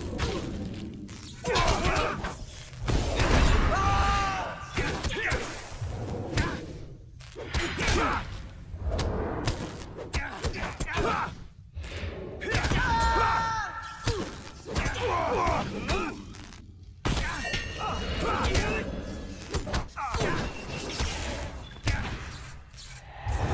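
Swords and staffs clash and strike in a fight.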